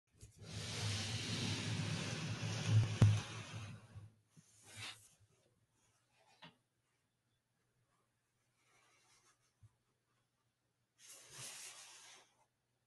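Gloved hands rub and shuffle a cardboard box.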